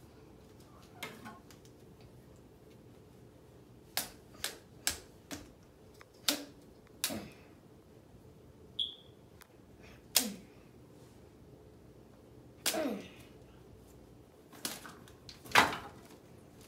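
Plastic toy parts click and clack as a child handles them.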